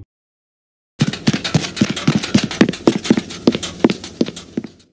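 Small footsteps patter quickly.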